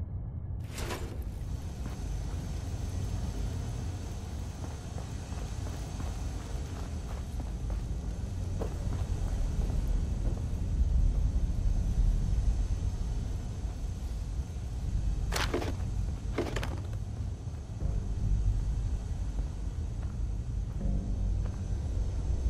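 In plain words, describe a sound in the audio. Footsteps crunch on a gritty floor.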